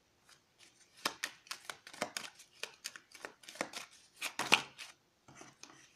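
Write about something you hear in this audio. Playing cards riffle and slap as they are shuffled by hand.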